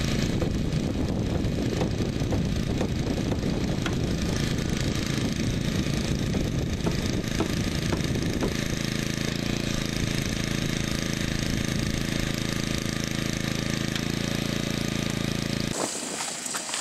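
A rescue tool's power unit drones loudly and steadily nearby.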